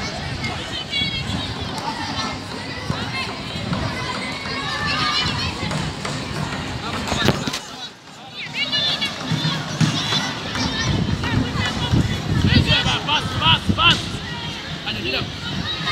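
Children and young men shout and call out nearby across an open field outdoors.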